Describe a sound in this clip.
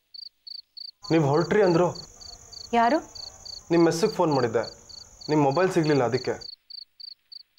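A woman speaks tensely close by.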